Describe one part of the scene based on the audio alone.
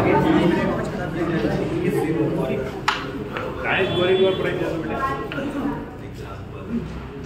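A crowd of people chatter nearby.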